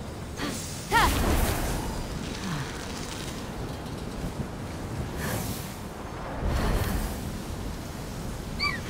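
Wind rushes past while gliding through the air.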